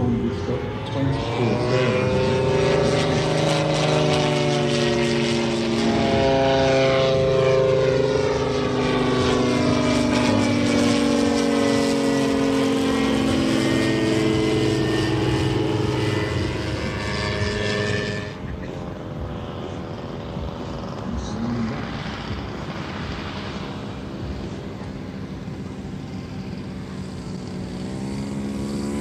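A model plane's engine whines as it flies overhead.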